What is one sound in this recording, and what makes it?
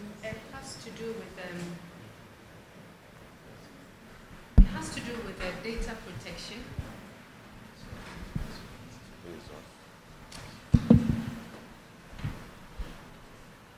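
A man speaks steadily through a microphone and loudspeakers in a large room.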